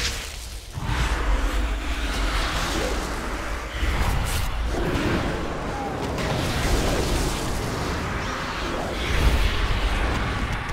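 Weapons clash and spells burst in a game fight.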